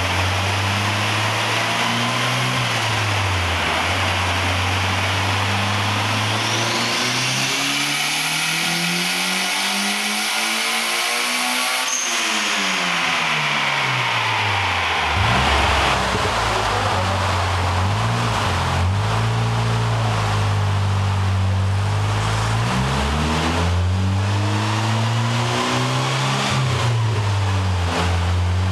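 A car engine revs up to a high scream and drops back down, inside a large echoing room.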